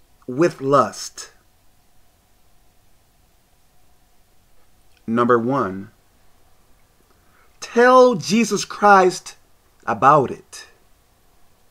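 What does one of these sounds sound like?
A man speaks in short bursts close to a microphone, with pauses between them.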